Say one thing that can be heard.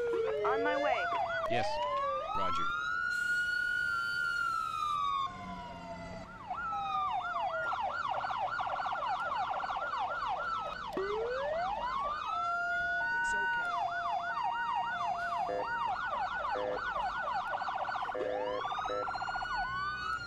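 Several emergency sirens wail and yelp over one another, close by.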